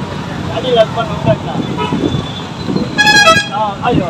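An auto-rickshaw engine putters past.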